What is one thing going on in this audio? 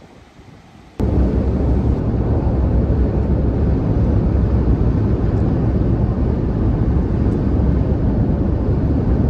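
A car's tyres roar steadily on a road.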